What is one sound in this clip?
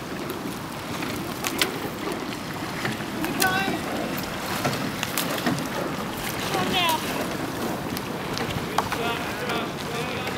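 Oars dip and splash rhythmically in the water.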